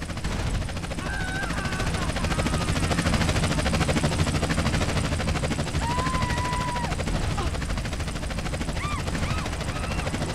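An ambulance siren wails in short bursts.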